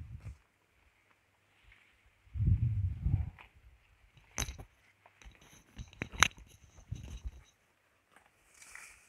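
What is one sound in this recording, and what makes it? Wind gusts through tall grass outdoors.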